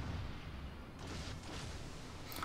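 Shells splash into the sea with dull booms.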